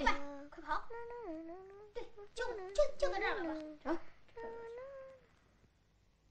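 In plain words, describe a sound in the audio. A young girl chants in a high, sing-song voice.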